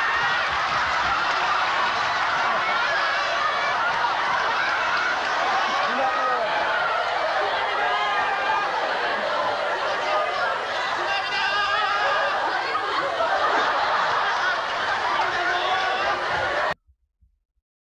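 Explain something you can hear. A crowd of men shouts and yells as they run.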